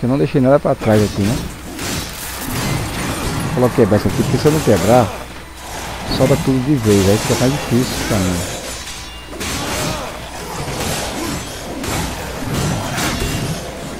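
Blades slash and clash in a fierce fight.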